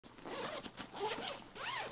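Hands rustle and pat a fabric backpack.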